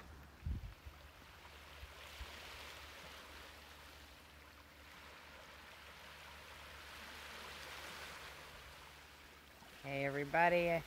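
Small waves wash gently onto a stony shore.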